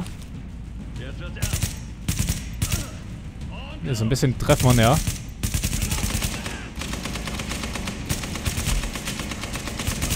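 Rifle shots ring out in bursts.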